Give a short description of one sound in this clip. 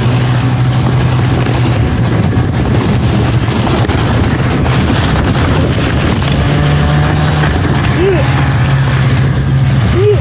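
A snowmobile engine drones steadily close by.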